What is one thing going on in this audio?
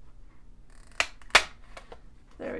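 A corner punch clicks sharply as it cuts through paper.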